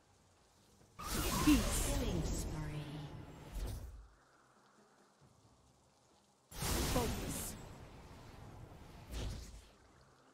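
A magical spell effect whooshes and shimmers in loud bursts.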